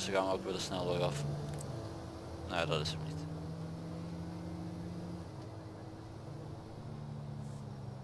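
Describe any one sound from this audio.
A van engine hums steadily while driving, its pitch shifting now and then.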